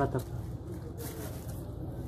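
A plastic bottle crinkles in a hand.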